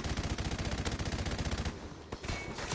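Rapid gunfire rattles in a fast burst.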